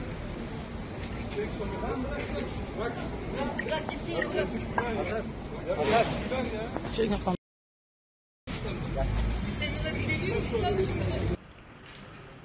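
Men shout and argue loudly.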